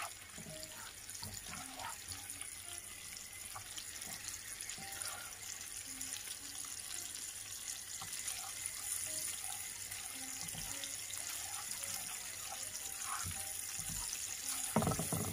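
Butter sizzles and crackles steadily in a hot pan.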